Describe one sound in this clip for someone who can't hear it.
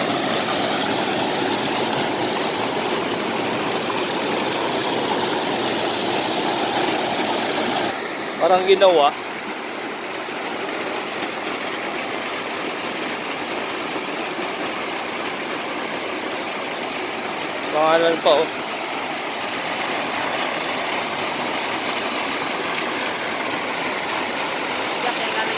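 Water rushes and churns loudly.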